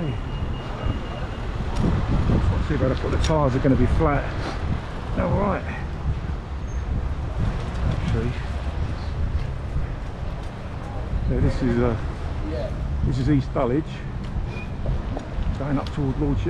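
Wind buffets as a bicycle rides along outdoors.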